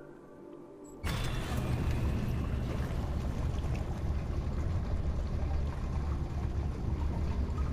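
Water laps and murmurs steadily.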